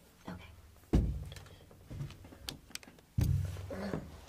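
A whiteboard thumps as it is moved.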